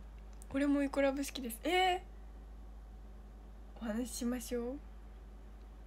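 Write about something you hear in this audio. A young woman speaks brightly and close to the microphone, in short bursts.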